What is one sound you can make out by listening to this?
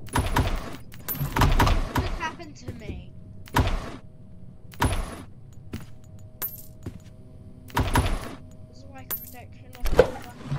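Coins clink as they are picked up.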